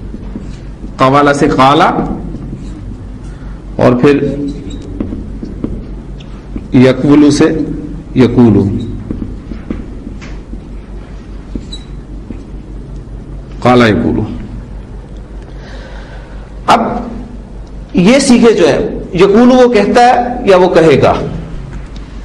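A man speaks calmly in short phrases, close by with a slight echo.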